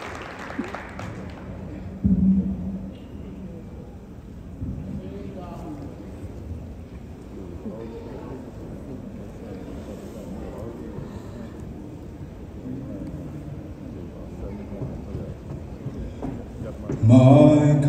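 A choir of young men and women sings together in a large echoing hall.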